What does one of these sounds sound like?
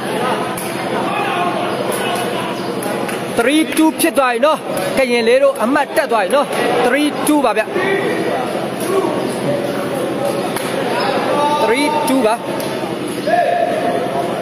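A ball thumps off a player's foot.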